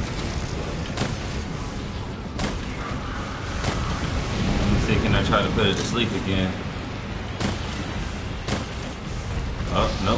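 Fire roars and crackles in bursts.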